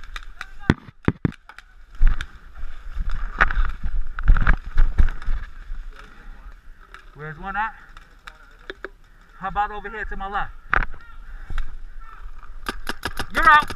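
A paintball marker fires sharp, rapid shots.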